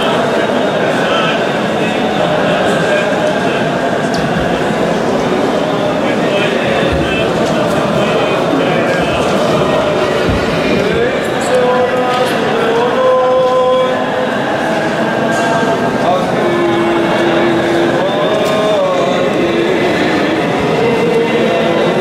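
Men chant together in a large echoing hall.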